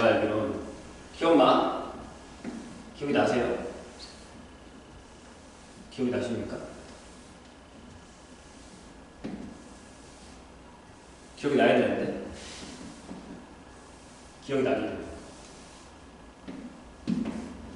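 A felt eraser rubs across a chalkboard in sweeping strokes.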